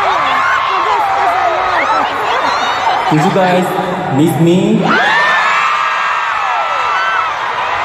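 A crowd screams and cheers loudly in a large echoing hall.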